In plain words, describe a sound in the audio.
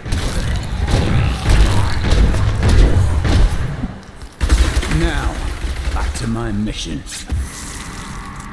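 Blows and magic blasts thud and crash in quick succession.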